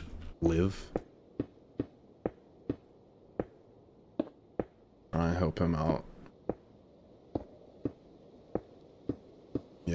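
Short sharp knocks of blocks being placed repeat at a steady pace.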